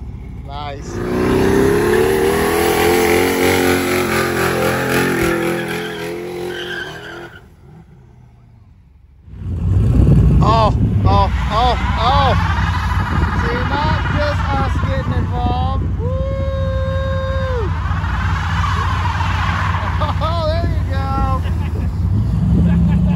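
Tyres screech and squeal as they spin on pavement.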